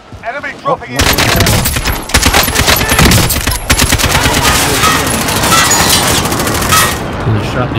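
A rifle fires in rapid bursts of loud shots.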